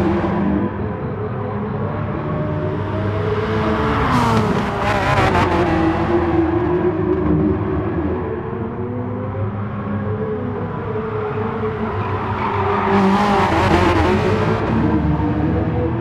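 A racing car engine roars at high revs, rising and falling as the car shifts gears.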